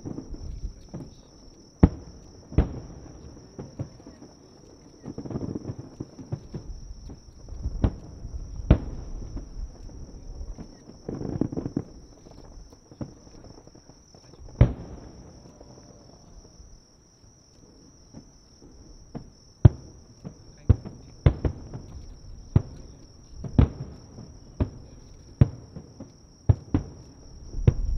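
Fireworks burst with loud booming bangs, heard from a distance.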